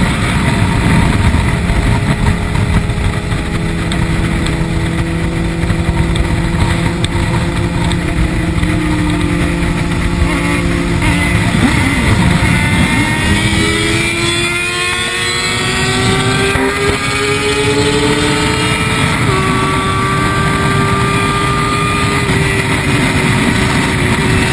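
A motorcycle engine roars steadily at high speed, shifting pitch as it changes gear.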